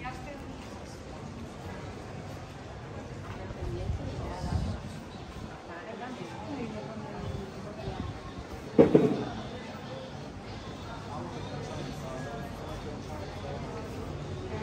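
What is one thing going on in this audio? A murmur of people chatting carries along a narrow street outdoors.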